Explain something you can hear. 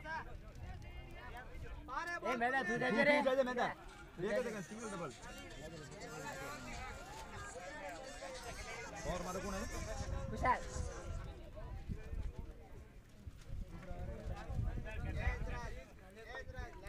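Young men talk and call out loudly nearby in the open air.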